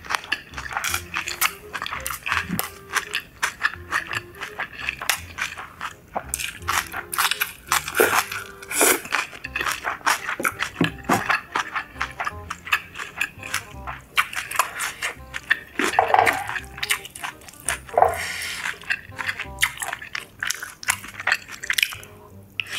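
A young woman chews food loudly and wetly, close to a microphone.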